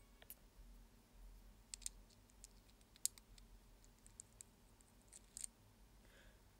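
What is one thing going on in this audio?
Small metal parts click and tap together.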